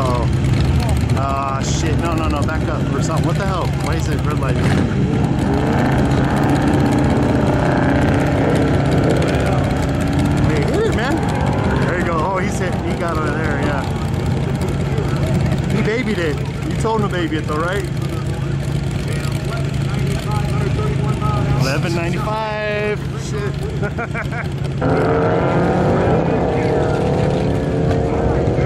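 Car engines rumble loudly and rev up and down close by.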